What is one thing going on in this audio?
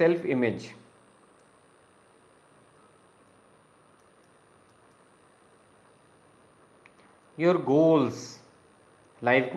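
A man speaks calmly and slowly, close to a microphone, with long pauses.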